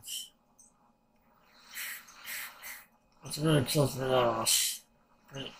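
A man breathes and hisses softly between words.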